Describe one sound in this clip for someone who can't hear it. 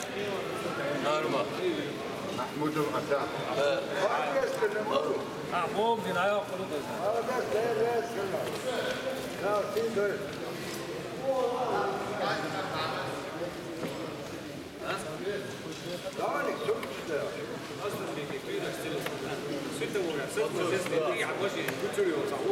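A crowd of men talks throughout, echoing in a large hall.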